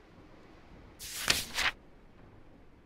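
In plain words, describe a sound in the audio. Paper rustles as a letter is picked up.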